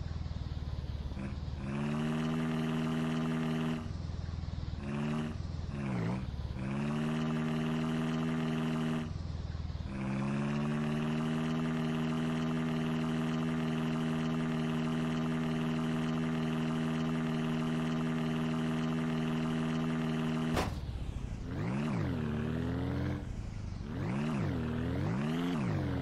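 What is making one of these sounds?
A small vehicle's engine hums steadily, then revs up and down.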